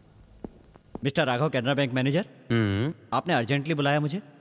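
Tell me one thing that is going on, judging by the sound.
A man speaks in a deep, intense voice close by.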